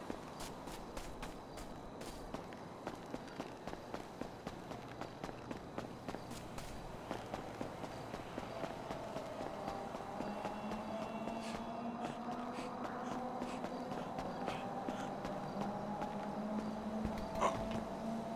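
Footsteps run quickly on pavement.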